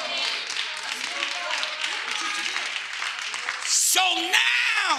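A congregation calls out and cheers.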